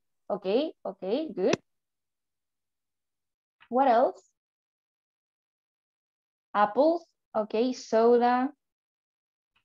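A woman speaks clearly and slowly over an online call, as if teaching.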